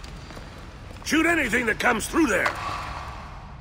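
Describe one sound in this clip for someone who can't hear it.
An elderly man shouts an order loudly.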